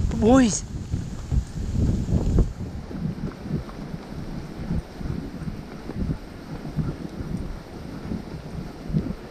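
Dogs pant as they run.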